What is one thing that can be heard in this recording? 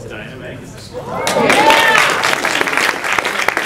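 An audience laughs and cheers.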